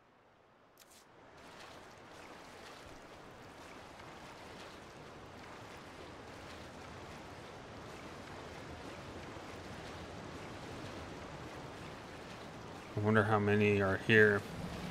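Water flows and trickles steadily.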